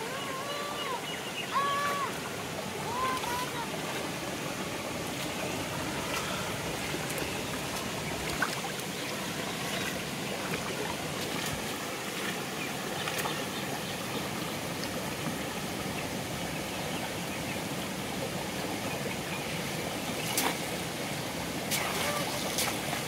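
A fishing net splashes and drips in the water.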